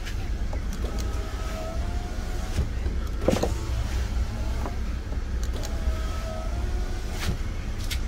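A car's power window motor whirs as the glass moves.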